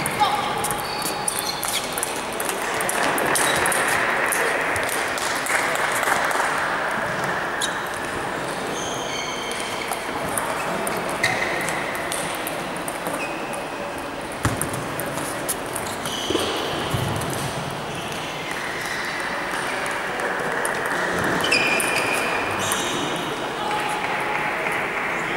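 A table tennis ball clicks back and forth between paddles and a table in a large echoing hall.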